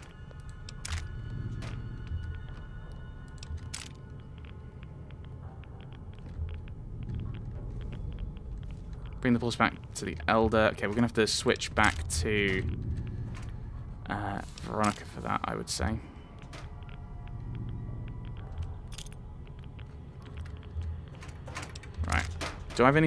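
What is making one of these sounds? Metal ammunition boxes clank open.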